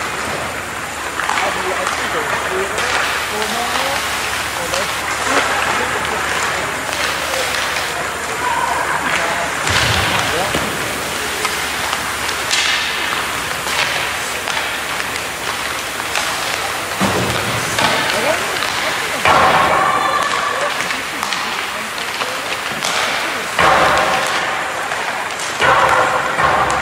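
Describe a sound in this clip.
Skate blades scrape and hiss on ice in a large echoing rink.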